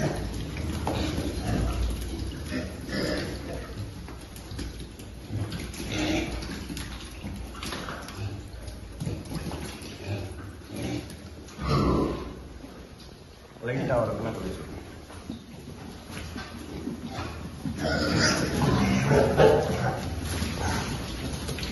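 Hooves patter on a concrete floor.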